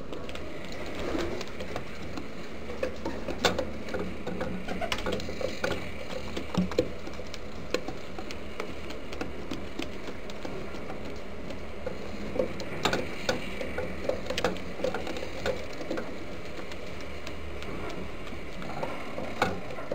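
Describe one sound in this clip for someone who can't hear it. Pigeons coo softly close by.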